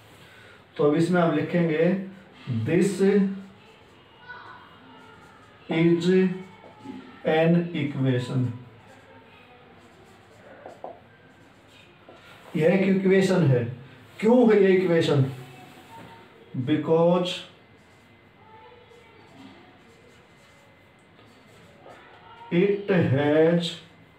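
A man speaks calmly and slowly, close by, in short phrases with pauses.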